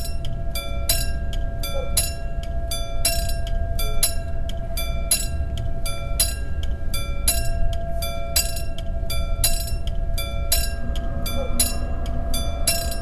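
A railway crossing bell dings rapidly and steadily.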